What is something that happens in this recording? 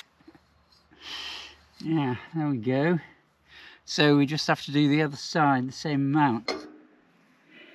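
A middle-aged man speaks calmly, close by.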